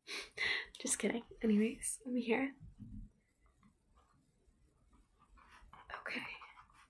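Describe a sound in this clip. A young woman speaks close to the microphone, calmly and with pauses.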